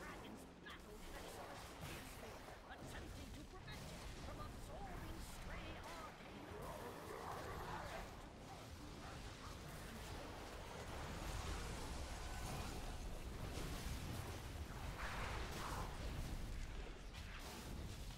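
Magic spells crackle and boom in a fast-paced battle.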